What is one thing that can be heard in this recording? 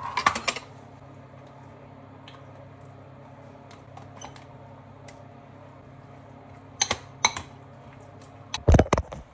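A spoon scoops and scrapes yogurt from a pot.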